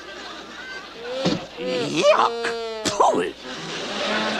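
A cartoon dog gasps and yelps in a comic voice.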